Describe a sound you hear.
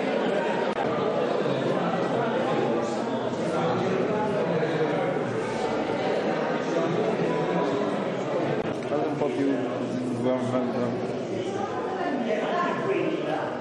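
Many men and women chatter at once in an echoing room.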